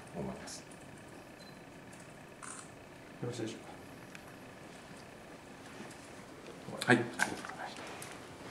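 A middle-aged man speaks briefly and calmly into nearby microphones.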